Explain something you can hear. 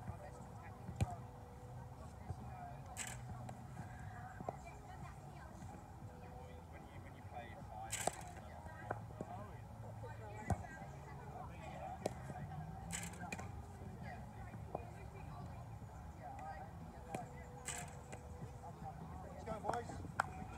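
A cricket ball thuds against a rebound net, several times.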